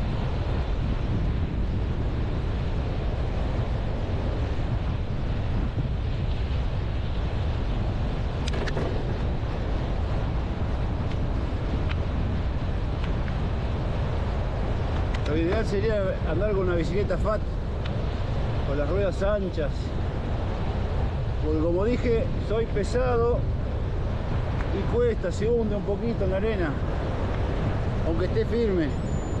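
Strong wind rumbles and buffets outdoors.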